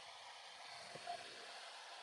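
Water pours gently into a tank.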